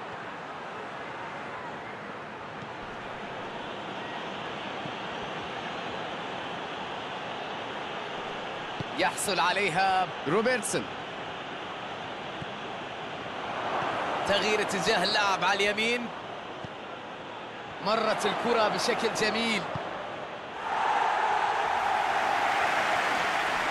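A large stadium crowd roars steadily, swelling now and then.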